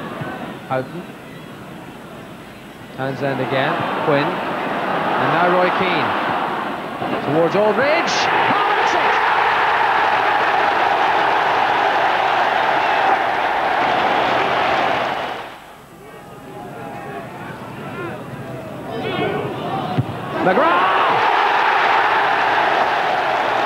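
A large stadium crowd roars loudly, swelling and fading in waves.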